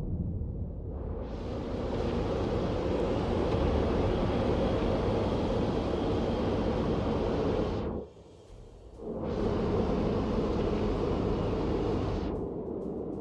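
Waves wash against a moving ship's hull.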